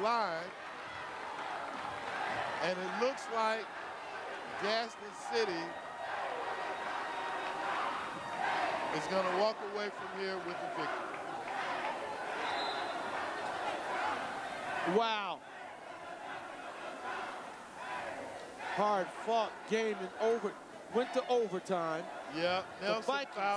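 A crowd of spectators murmurs and calls out in an echoing gym.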